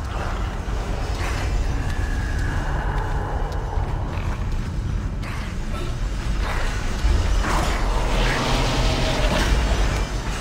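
Heavy metal-booted footsteps clank on a hard floor.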